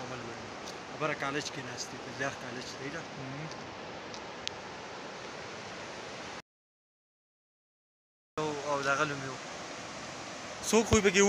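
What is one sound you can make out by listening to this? A shallow river rushes steadily over stones outdoors.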